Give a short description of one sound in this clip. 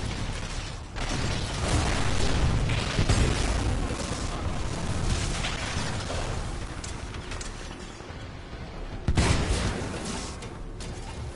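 Heavy gunfire rattles and explosions boom.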